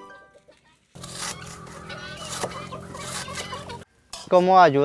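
A knife slices through a cabbage with crisp, rasping cuts.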